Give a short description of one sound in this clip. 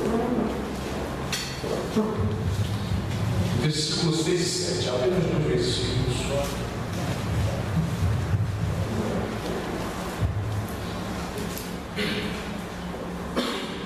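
A man sniffs and sobs.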